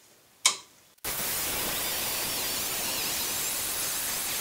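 An angle grinder whines loudly and grinds metal.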